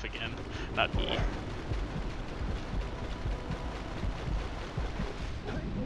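Water splashes as something swims through it.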